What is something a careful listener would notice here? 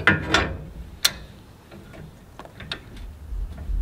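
A pull cord rattles as it is yanked on a small engine.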